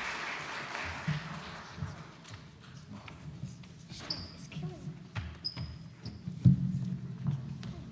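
Children's feet shuffle and thump on a wooden stage.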